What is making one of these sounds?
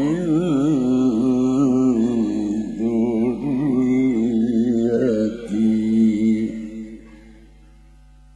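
An elderly man chants melodiously into a microphone, heard through loudspeakers.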